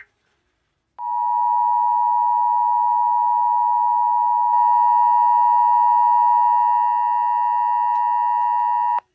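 A steady, piercing two-tone alert sounds through a loudspeaker.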